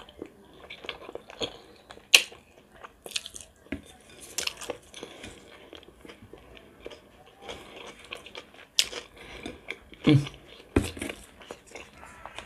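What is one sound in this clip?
A woman chews and smacks her lips close up.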